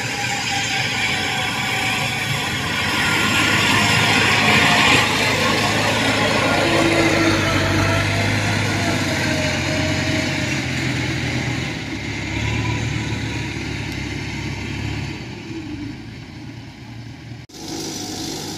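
A machine's engine rumbles steadily close by.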